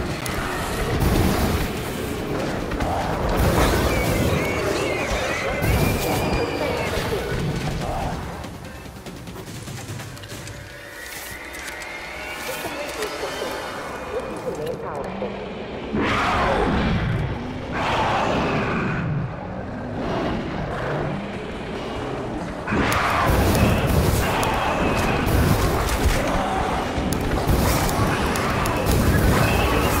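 A flamethrower roars loudly in bursts.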